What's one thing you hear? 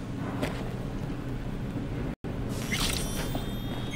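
A sliding door hisses open.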